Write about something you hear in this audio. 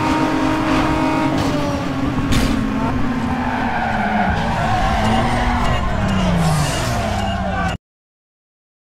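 A racing car engine roars at high revs and slowly winds down.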